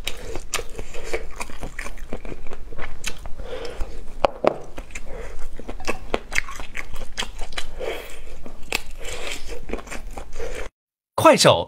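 A young woman chews and slurps food close to a microphone.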